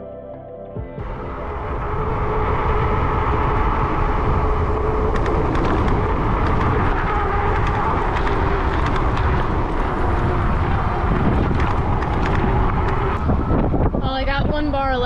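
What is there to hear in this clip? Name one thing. Bicycle tyres roll over a paved path.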